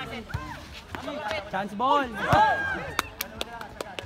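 A crowd of children and adults shouts and cheers outdoors.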